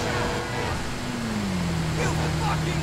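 A motorcycle engine hums and drops in pitch.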